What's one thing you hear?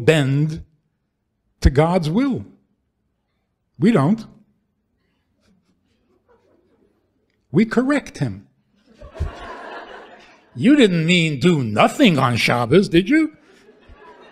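An elderly man speaks with animation into a microphone, pausing between phrases.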